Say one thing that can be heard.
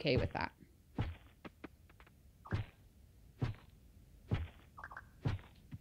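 A hoe thuds into dry soil again and again.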